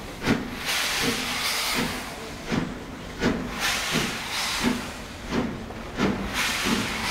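Steam hisses from a locomotive's cylinders.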